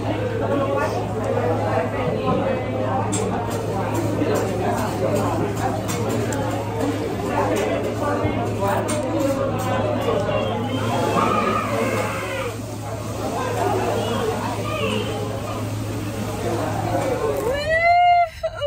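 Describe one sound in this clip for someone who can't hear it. Voices murmur and chatter in a busy room.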